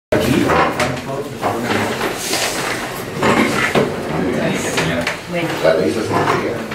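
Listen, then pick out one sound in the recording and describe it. Several adults talk at once in a small room with a loud murmur of voices.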